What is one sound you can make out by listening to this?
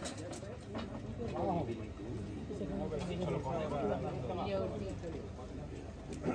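Men talk quietly nearby outdoors.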